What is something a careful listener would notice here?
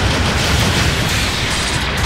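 A loud explosion crackles and roars.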